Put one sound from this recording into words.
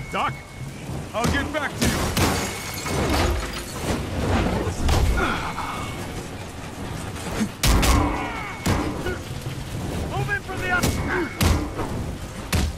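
Heavy punches and kicks land with loud thuds.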